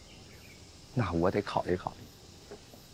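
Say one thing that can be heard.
A man answers briefly.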